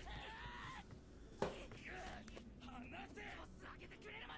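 A young man talks quietly and amusedly, close by.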